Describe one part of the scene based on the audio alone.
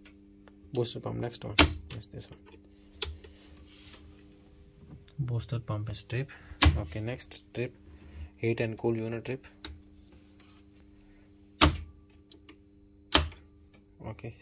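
A screwdriver taps and clicks against metal screw terminals.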